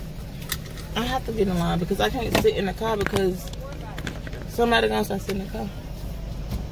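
A woman speaks casually, close by, inside a car.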